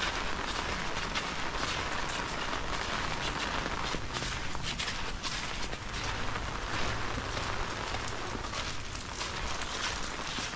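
Steady rain falls and patters on stone paving outdoors.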